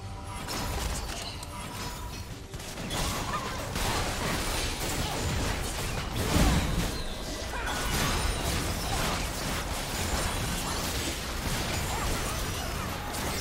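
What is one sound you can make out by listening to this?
Spell blasts, clashing weapons and magical impacts crackle and boom in a busy game battle.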